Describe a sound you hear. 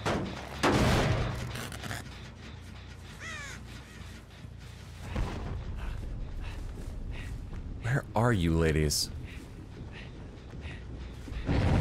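A man talks into a microphone.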